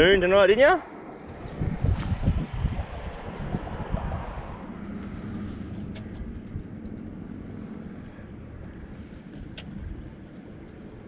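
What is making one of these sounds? A fishing reel clicks and whirs as line is wound in.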